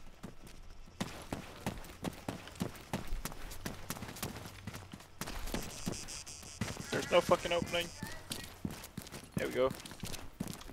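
Footsteps crunch on gravel and pavement.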